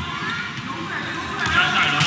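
A volleyball thumps as a player passes it.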